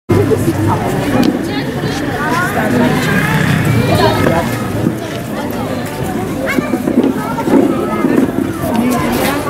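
Children shout and call out with high voices.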